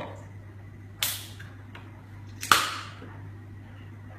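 A drink can snaps open with a fizzing hiss.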